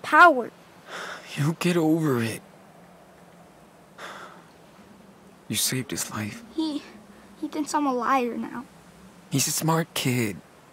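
A teenage boy answers calmly and softly.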